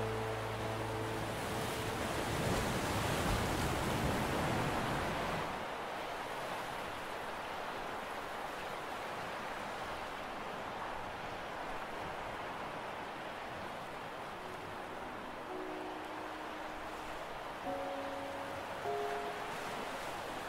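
Waves break and wash onto a beach in the distance.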